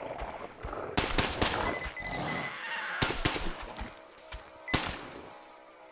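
A heavy gun fires in loud, sharp bursts.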